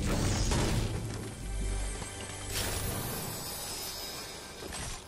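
A pickaxe strikes a wooden wall with loud thuds.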